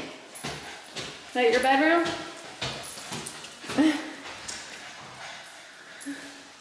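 A small dog's claws click and tap on a hard wooden floor.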